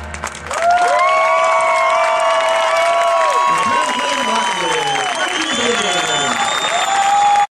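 A marching band's brass plays loud sustained chords outdoors.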